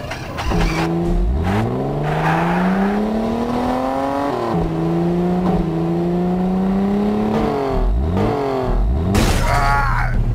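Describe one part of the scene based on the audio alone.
A buggy engine revs up and down as it drives.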